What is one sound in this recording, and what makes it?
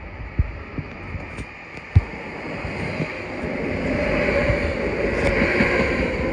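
A train pulls into a station with a rising rumble and squeal of brakes.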